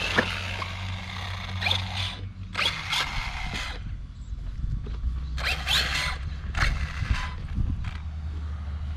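A small electric motor whines in short bursts.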